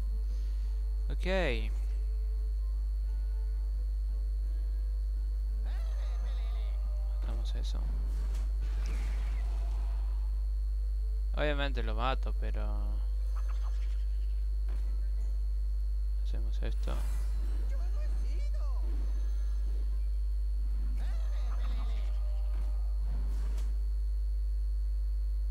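Short magical chimes and whooshes from a card game sound now and then.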